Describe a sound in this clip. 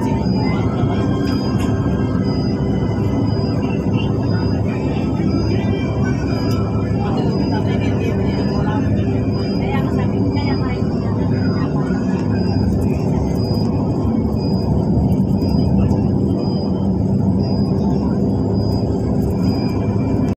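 Tyres roar steadily on a highway from inside a moving vehicle.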